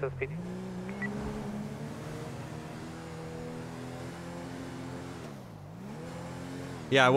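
A car engine hums steadily as it drives along, dropping briefly in pitch and rising again.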